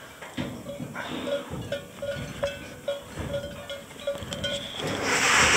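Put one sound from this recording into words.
Boots knock on metal ladder rungs inside a hollow metal pipe.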